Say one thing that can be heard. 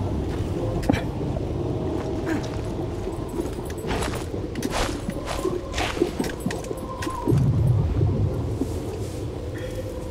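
Clothing rustles as a soldier crouches over a body.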